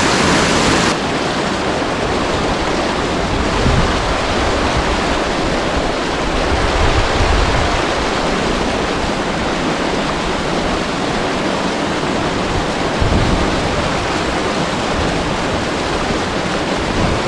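A stream burbles and splashes over rocks.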